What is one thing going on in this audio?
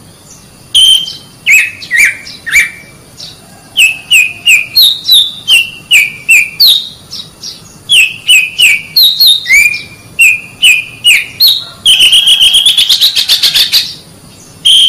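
A songbird sings loud, clear whistled notes close by, ending in a fast trill.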